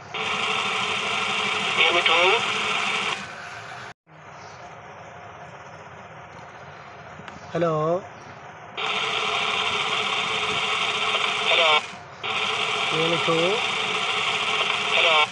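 A toy parrot's motor whirs loudly as its wings flap.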